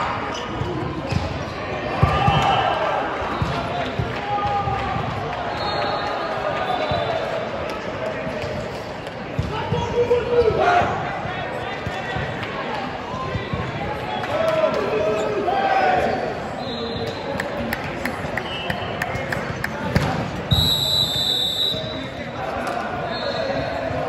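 A crowd of young players and spectators chatters and calls out in a large echoing hall.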